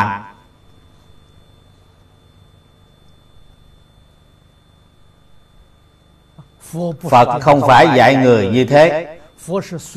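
An elderly man speaks calmly and clearly into a close microphone.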